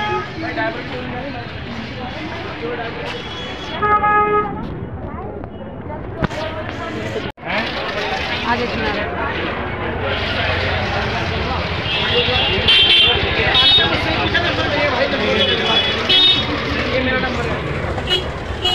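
A crowd chatters all around in a busy, noisy place.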